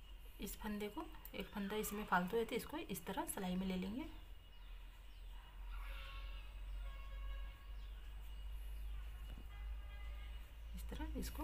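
Metal knitting needles click and tick against each other while knitting.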